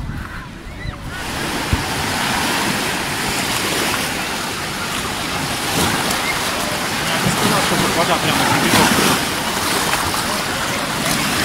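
Small waves wash and break on the shore.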